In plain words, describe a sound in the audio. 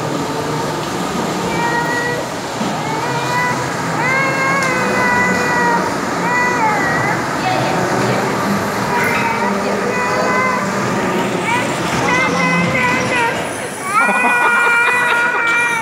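Electric bumper cars hum and rumble across a hard floor.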